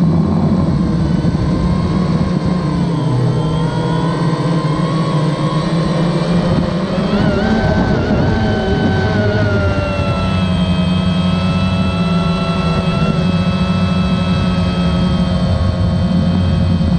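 A drone's propellers buzz and whine loudly up close, shifting in pitch.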